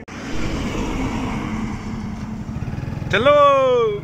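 A truck rumbles past close by.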